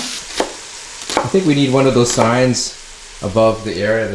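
A knife chops through leeks on a wooden board.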